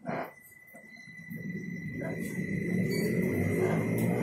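A bus engine rumbles low and grows louder as the bus pulls away.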